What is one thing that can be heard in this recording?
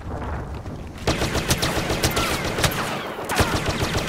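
A blaster rifle fires in rapid bursts.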